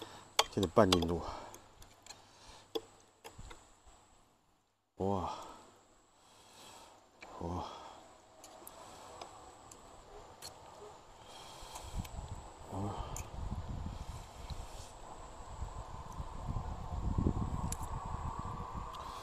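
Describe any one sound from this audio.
A metal fork and spoon clink against a ceramic plate.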